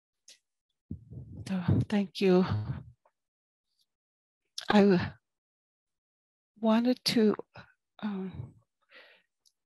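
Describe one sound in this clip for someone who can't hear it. A middle-aged woman speaks calmly in short phrases through a headset microphone on an online call.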